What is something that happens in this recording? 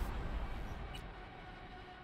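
A soft click sounds once.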